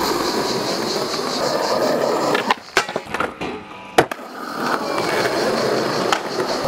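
Skateboard wheels roll loudly over rough concrete.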